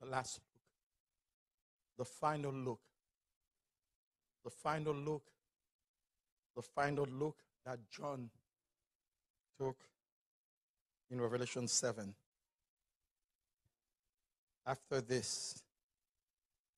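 A man speaks slowly and emphatically into a microphone, in short phrases separated by pauses.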